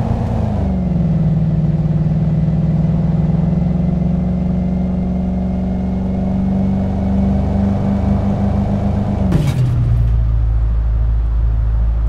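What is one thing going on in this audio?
A car engine hums steadily, then drops to a lower drone.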